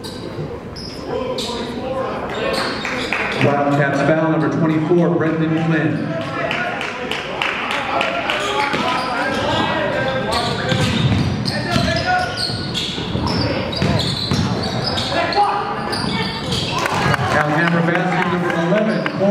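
A crowd shouts and talks around the court.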